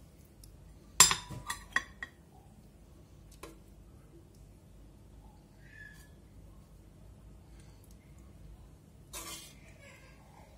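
A metal ladle clinks against a pot and plate.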